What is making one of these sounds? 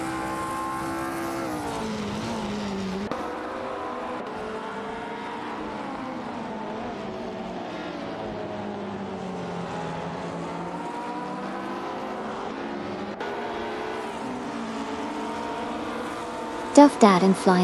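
A racing car engine roars, its pitch rising and falling as it speeds up and slows down.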